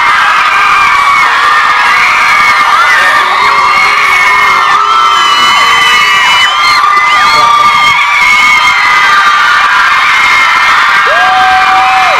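A large crowd of young women screams and cheers loudly.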